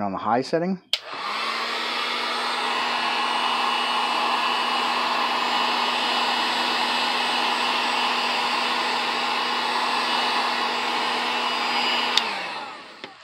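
A heat gun blows with a steady, loud whirring rush.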